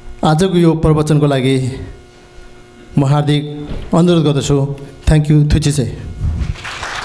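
A man speaks slowly into a microphone, heard through loudspeakers.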